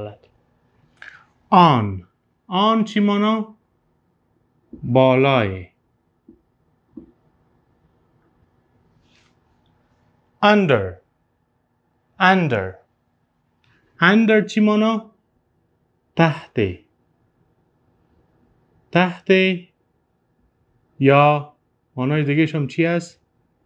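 A man speaks calmly and clearly, close to a microphone, in short phrases with pauses.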